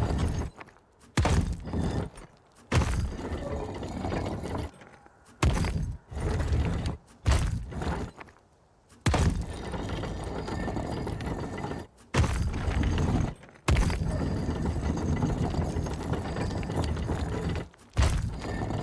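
Heavy stone dials grind as they turn, each turn starting with a sharp clunk.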